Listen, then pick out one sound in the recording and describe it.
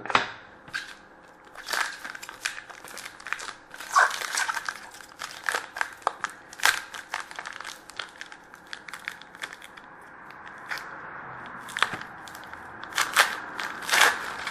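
Small plastic parts click and snap together.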